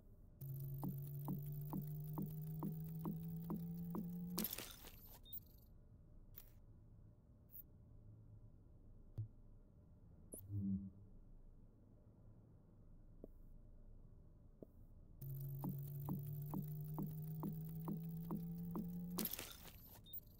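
A rising electronic hum with steady ticking builds up and ends in a sharp whoosh.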